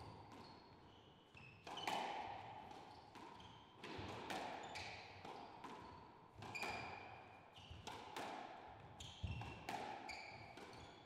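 A squash ball smacks hard against the walls, echoing in a bare court.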